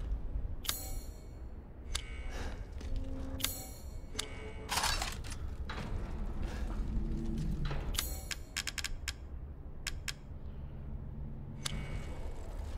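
Short clicks and beeps sound as menu items are selected.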